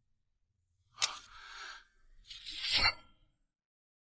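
A sword blade scrapes as it slides out of its sheath.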